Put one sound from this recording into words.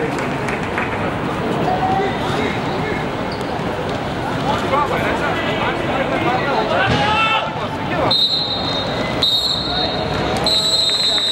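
A football thuds off a player's foot.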